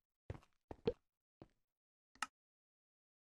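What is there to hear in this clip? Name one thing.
Short clicks sound from a game menu.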